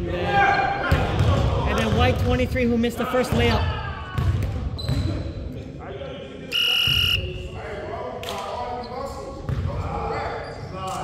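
Sneakers squeak on a hardwood floor in a large echoing gym.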